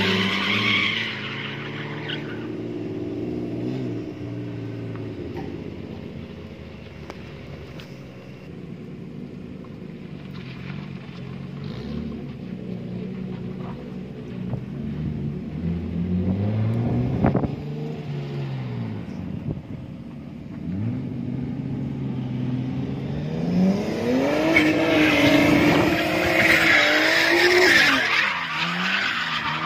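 A car engine revs hard and whines as a car drifts around a track.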